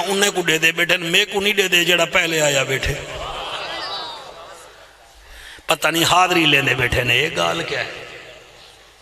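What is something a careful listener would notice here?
An elderly man preaches forcefully into a microphone, heard through loudspeakers outdoors.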